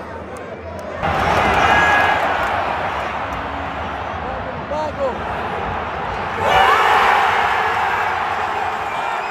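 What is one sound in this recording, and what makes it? A stadium crowd roars and cheers in sudden swells.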